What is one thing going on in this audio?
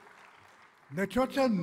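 An elderly man speaks through a microphone.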